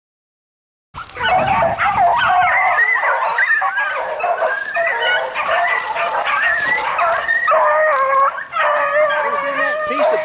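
Dogs bay and howl loudly outdoors.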